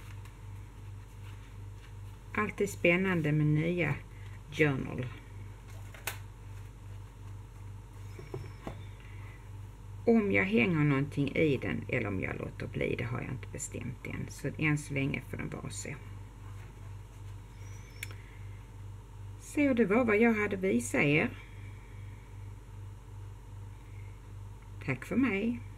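Paper rustles and crinkles as a booklet is handled.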